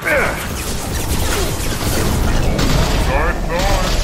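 Energy blasts crackle and burst.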